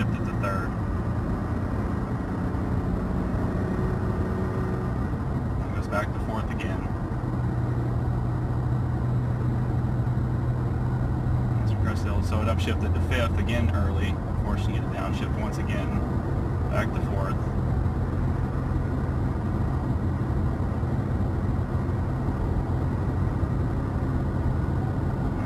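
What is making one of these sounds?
A car engine hums steadily from inside the cab while driving.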